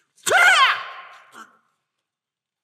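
A man shouts loudly into a microphone in an echoing hall.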